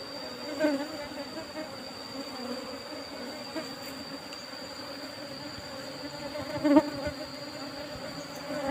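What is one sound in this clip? Bees buzz steadily around a hive close by.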